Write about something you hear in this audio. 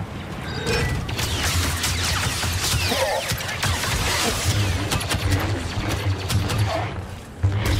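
Blaster shots zap in rapid bursts.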